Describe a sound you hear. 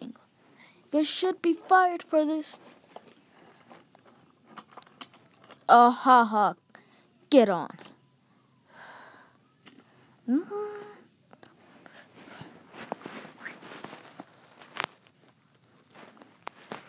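A small plastic toy car clicks and rattles as it is moved by hand.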